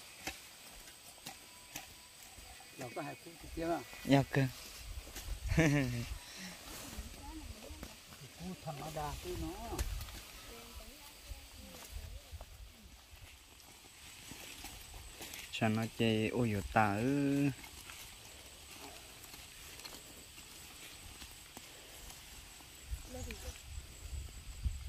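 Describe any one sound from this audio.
Leaves rustle as plants are pulled from the ground.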